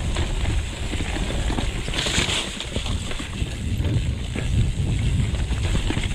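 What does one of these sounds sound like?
Mountain bike tyres rumble and rattle over a bumpy dirt trail.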